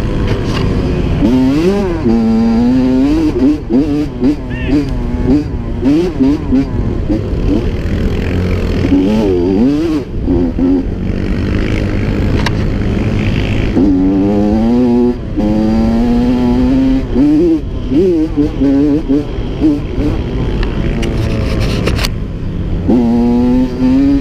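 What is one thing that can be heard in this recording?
A dirt bike engine revs up and down loudly, close by.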